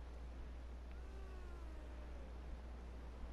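A young woman shouts excitedly nearby.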